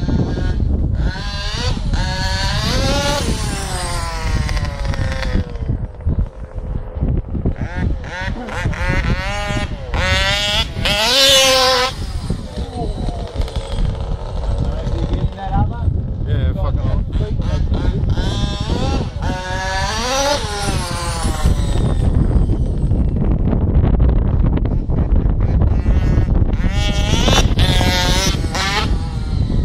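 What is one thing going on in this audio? A toy car's electric motor whines, rising and falling in pitch as it speeds about.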